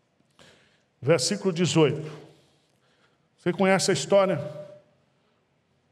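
A middle-aged man speaks with animation into a head microphone, heard through loudspeakers in a large hall.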